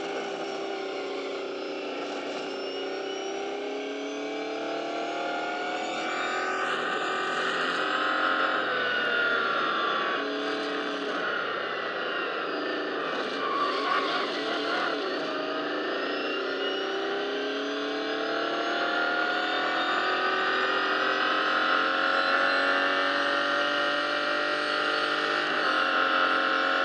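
A racing car engine roars steadily, rising and falling in pitch as it speeds up and shifts gears.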